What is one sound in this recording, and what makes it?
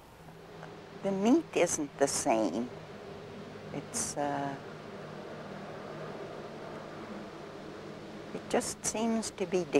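An elderly woman speaks calmly, close to a microphone, with pauses.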